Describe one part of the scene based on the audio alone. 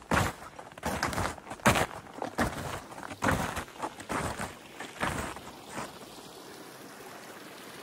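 A shallow stream flows gently over stones.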